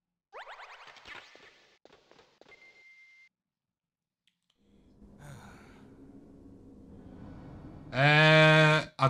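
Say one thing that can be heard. A young man speaks casually into a microphone.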